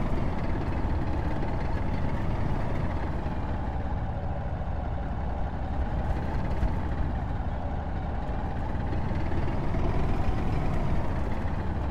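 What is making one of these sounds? A heavy armoured vehicle's engine rumbles steadily as it drives.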